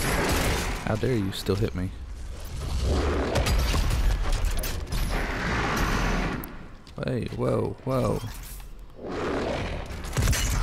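A gun fires loud, booming blasts.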